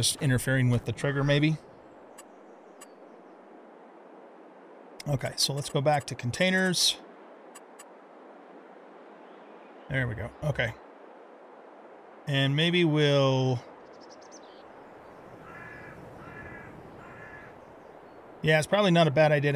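A man talks calmly and closely into a microphone, in bursts.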